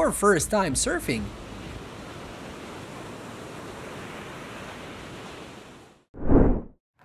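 Waves crash and churn.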